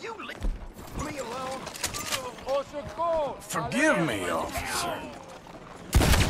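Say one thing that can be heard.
A man groans and cries out in pain close by.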